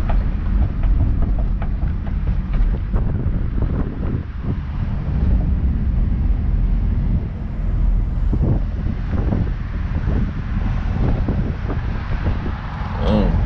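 A car drives along a road, heard from inside the car as a low rumble.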